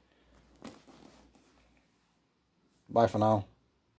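A boot thumps softly onto a bed cover.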